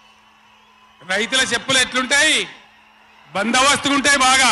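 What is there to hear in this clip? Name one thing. A man speaks forcefully into a microphone over loudspeakers.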